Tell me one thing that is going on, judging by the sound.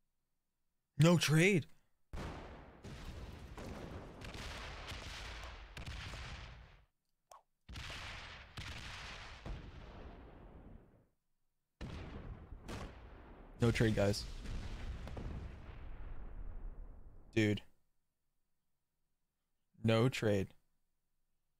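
A young man speaks in short bursts, close to a microphone.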